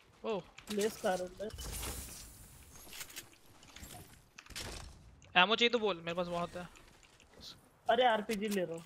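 Footsteps run through grass.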